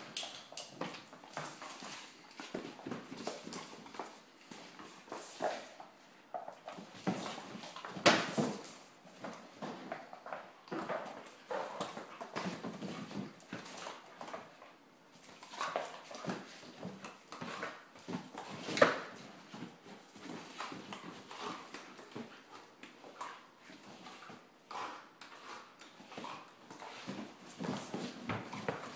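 Dog paws skitter and scrape on a hard floor.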